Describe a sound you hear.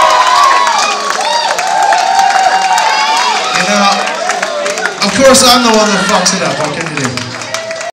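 A crowd shouts and cheers nearby.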